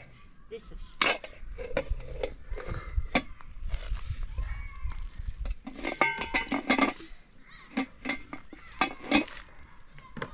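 A metal lid clanks onto a cooking pot.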